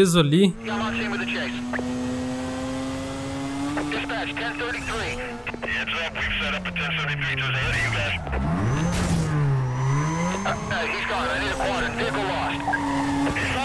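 A car engine roars steadily, its pitch rising and falling as it revs and shifts gears.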